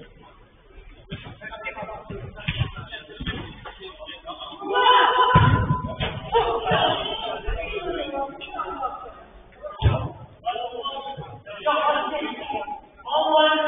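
Men shout to each other at a distance in an echoing hall.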